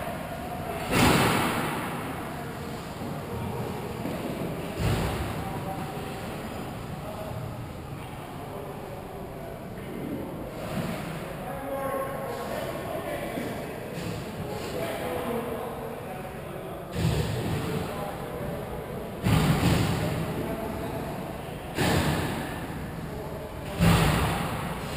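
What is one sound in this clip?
Hockey sticks clack sharply against pucks and the ice.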